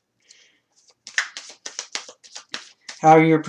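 Playing cards riffle and snap in quick succession.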